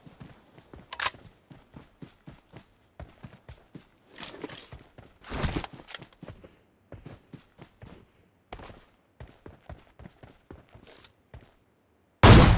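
Footsteps rustle through grass at a steady pace.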